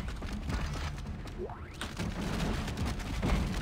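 A monster growls and snarls up close.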